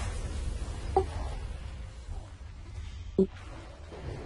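Short sharp impacts ring out.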